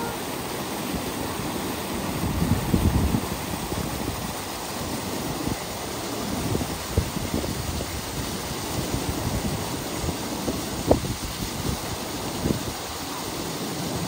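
A swimmer splashes through water.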